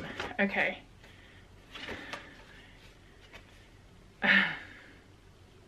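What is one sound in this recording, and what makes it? Paper rustles in hands.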